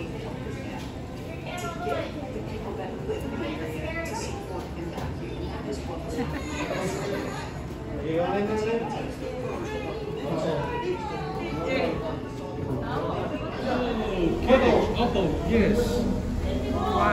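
Men and women talk nearby in a crowd, with voices rising and falling.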